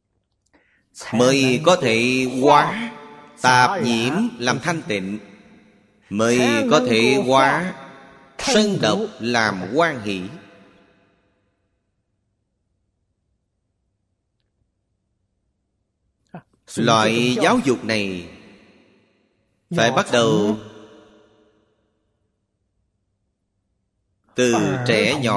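An elderly man speaks calmly and slowly into a microphone, pausing between phrases.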